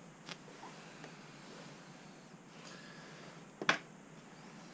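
A hand knocks a lamp against a wooden frame.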